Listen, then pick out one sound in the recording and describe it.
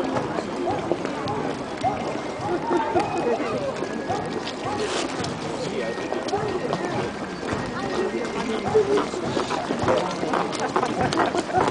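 A crowd of children and adults chatter nearby outdoors.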